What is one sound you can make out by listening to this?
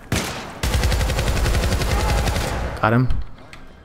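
An automatic rifle fires a rapid, loud burst.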